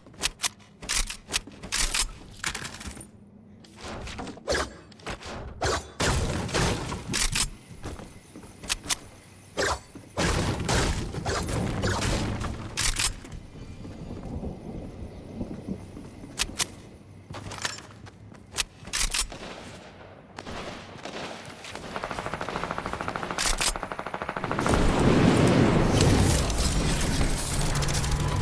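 Game sound effects of building and pickaxe strikes click and thud in quick bursts.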